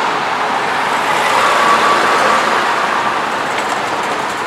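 A large truck rumbles past close by, growing louder and then fading.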